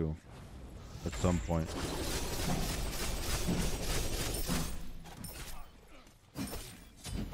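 Game sound effects whoosh and clash during a fight.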